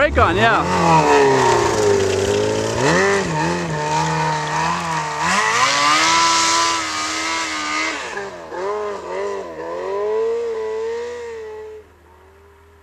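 A snowmobile engine revs loudly close by, rising and falling as the rider pulls away.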